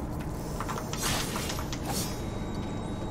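A sword swishes sharply through the air.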